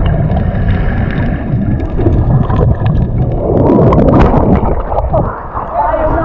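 Water rumbles and bubbles churn underwater.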